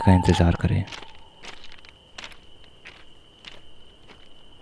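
Footsteps crunch slowly on gravel.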